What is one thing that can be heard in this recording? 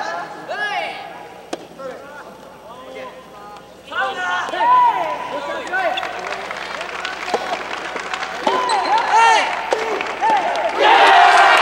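A ball is struck with a racket.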